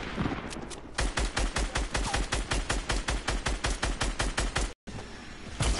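A rifle fires in a fast, steady burst.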